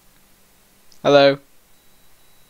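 A young man makes a short, loud exclamation close to a microphone.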